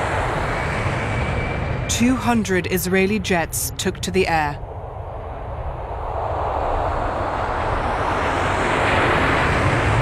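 Jet engines roar loudly as a jet takes off and climbs overhead.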